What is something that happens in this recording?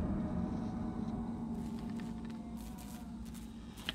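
Dry corn stalks rustle as someone pushes through them.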